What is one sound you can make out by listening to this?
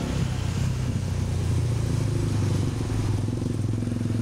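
A minibus engine rumbles nearby.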